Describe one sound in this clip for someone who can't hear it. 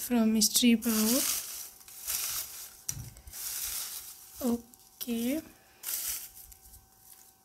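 Paper slips rustle and shuffle in a bowl.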